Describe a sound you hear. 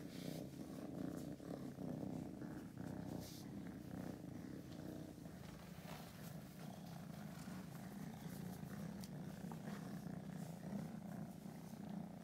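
A hand rubs softly through fur.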